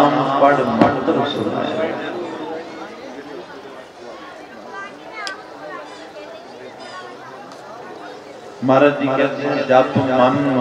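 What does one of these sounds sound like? A man sings through a microphone with an echo outdoors.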